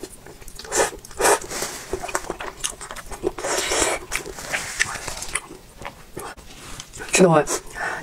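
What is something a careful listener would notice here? A young woman chews noodles wetly close to a microphone.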